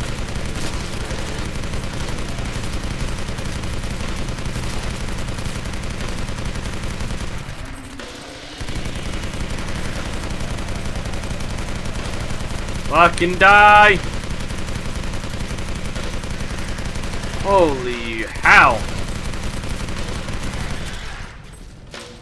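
Rapid gunfire rattles on and on.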